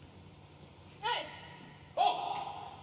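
A young woman calls out loudly on the court.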